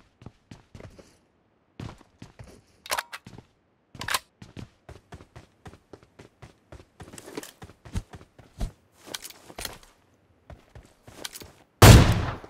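Footsteps patter quickly over hard ground and stairs.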